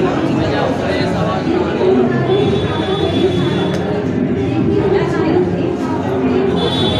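A crowd of young people murmurs in the background.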